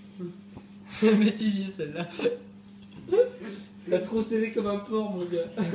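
A young man laughs loudly nearby.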